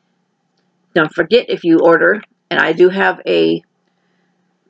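A woman speaks calmly and close to a microphone.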